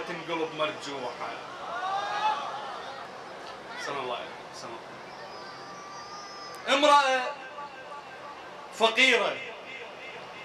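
A man speaks with animation through a microphone, heard over loudspeakers.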